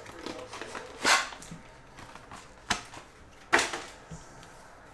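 Paper packs slap down onto a table.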